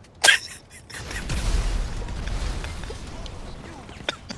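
An explosion booms and rumbles deeply.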